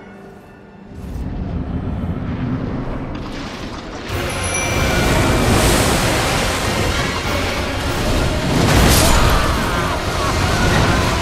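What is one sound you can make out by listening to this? A sword clashes and slashes in a loud fight.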